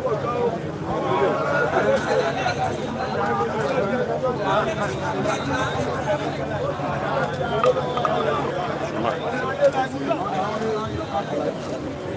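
Men talk loudly and excitedly nearby, their voices rising in a lively crowd.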